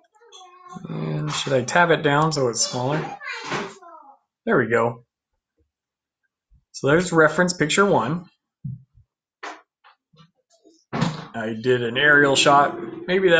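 A man talks calmly into a close microphone, heard as if over an online call.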